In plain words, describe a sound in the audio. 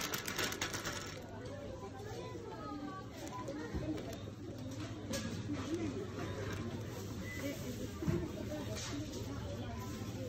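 A shopping cart rattles as it rolls across a hard floor.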